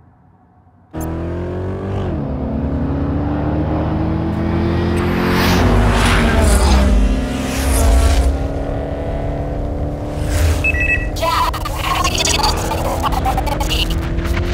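Several car engines roar loudly and rev as the cars race side by side.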